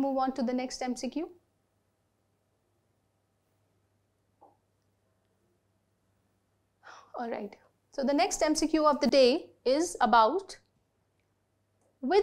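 A woman lectures clearly into a close microphone, pausing between phrases.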